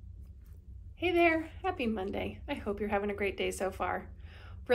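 A middle-aged woman speaks warmly and calmly into a nearby microphone.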